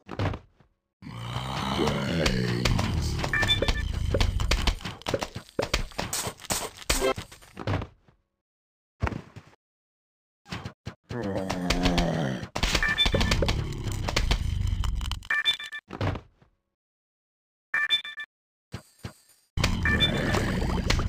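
Bright electronic chimes ring out as game pieces match and burst.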